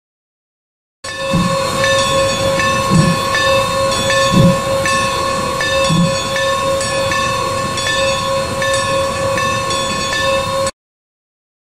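A steam locomotive idles with a steady hiss and low puffs.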